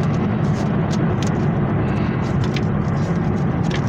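Paper inserts rustle and crinkle in hands.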